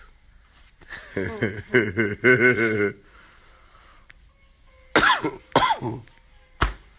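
A young man laughs close by.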